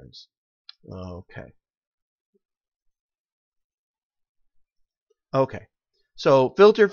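A middle-aged man speaks calmly through a computer microphone, with pauses.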